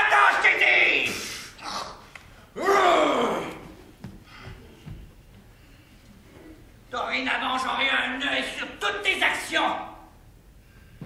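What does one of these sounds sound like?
A man shouts with animation in an echoing hall.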